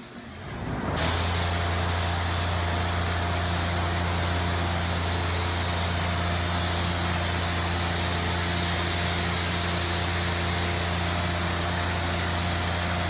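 A spray gun hisses steadily and loudly.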